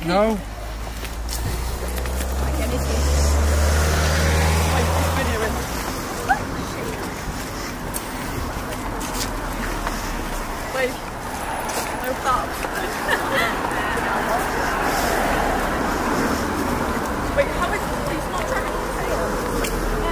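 Young women chat and laugh nearby outdoors.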